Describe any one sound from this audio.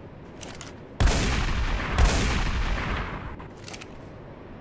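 A shotgun fires two loud blasts.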